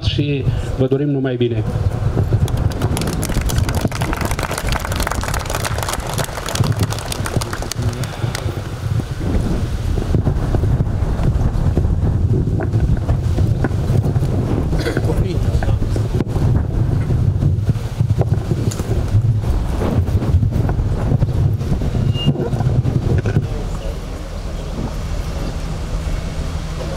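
Wind buffets the microphone with a low rumble.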